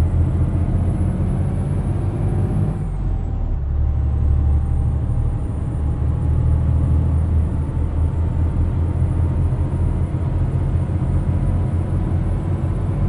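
A truck engine rumbles and hums steadily, dipping briefly around a gear change.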